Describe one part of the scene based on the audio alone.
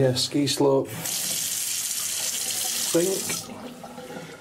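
Water gushes from a tap and splashes into a bathtub.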